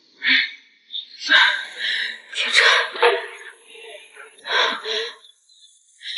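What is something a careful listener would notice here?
A young woman speaks in a shaky, upset voice close by.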